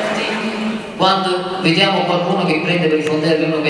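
A man speaks through a loudspeaker in a large echoing hall.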